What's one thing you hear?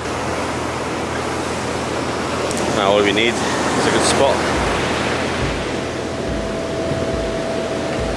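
Sea waves wash and crash onto the shore.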